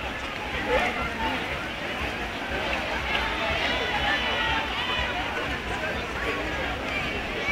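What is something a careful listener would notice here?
A large crowd chatters outdoors, with many voices overlapping.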